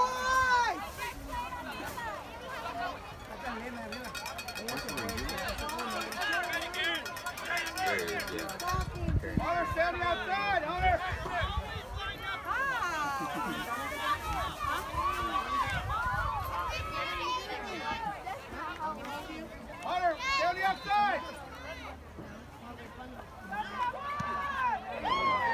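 Young girls cheer and chant loudly close by, outdoors.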